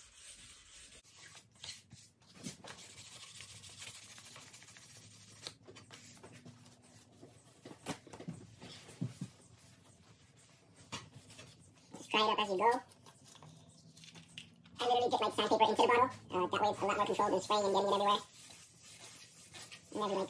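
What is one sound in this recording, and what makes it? Sandpaper rubs against a hard surface.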